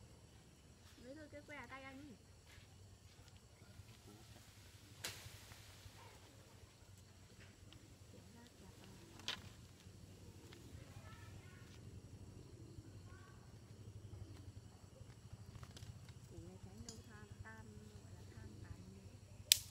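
A young man and a young woman talk quietly nearby, outdoors.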